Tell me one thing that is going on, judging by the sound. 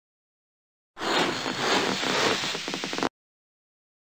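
A comic sound effect plays as a cartoon hen pops up from under a hat.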